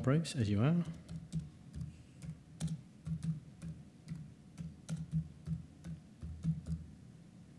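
Computer keys click rapidly as someone types.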